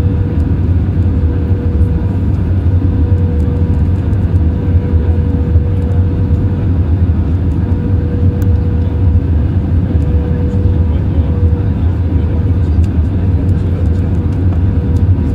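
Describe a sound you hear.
A jet engine roars steadily close by.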